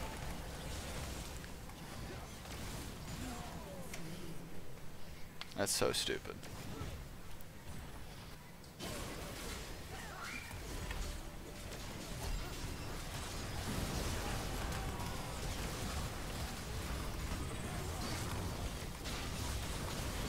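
Game sound effects of spells and hits play.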